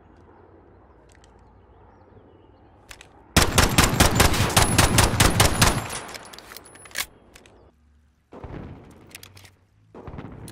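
A pistol clicks and rattles as it is handled.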